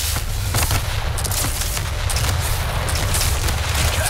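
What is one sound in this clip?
Explosions burst.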